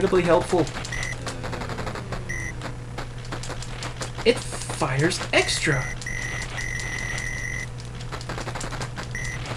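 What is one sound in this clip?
Retro arcade game sound effects beep and blip rapidly.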